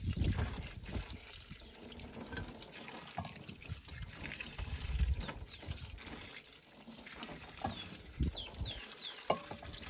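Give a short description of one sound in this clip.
Water runs from a tap and splashes into a metal bowl.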